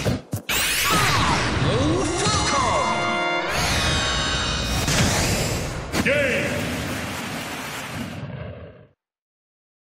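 Explosions boom and crackle with bright whooshing blasts.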